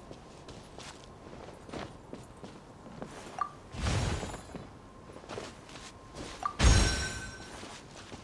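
Footsteps tap on wooden planks.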